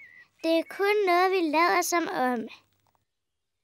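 A young girl speaks brightly and with animation.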